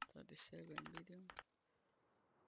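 Menu buttons click in quick succession.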